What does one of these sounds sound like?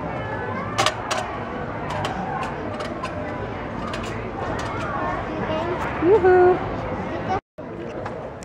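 A little girl babbles and squeals.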